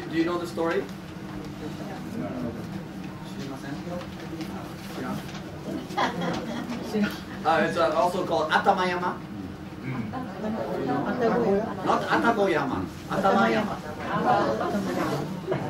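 A young man speaks with animation to an audience in a room with a slight echo.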